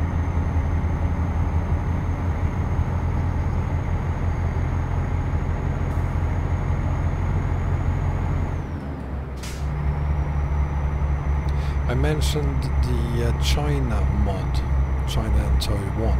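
Tyres roll along a road.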